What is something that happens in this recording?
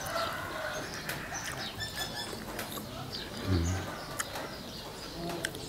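A man bites and crunches a slice of crisp green mango up close.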